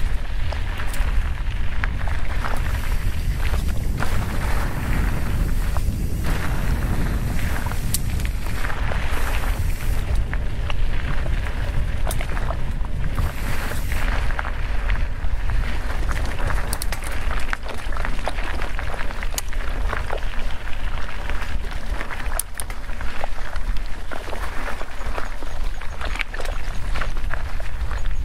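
Wind rushes loudly past a bicycle as it rolls downhill.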